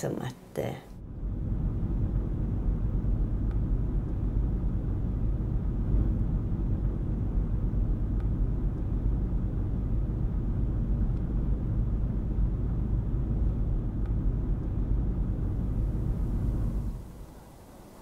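A vehicle engine rumbles low and steady while driving.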